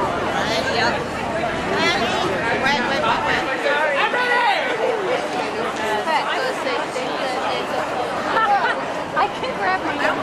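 A crowd of women talks and chatters nearby outdoors.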